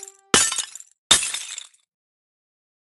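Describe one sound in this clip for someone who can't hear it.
A burst of bright game jingles plays at the start.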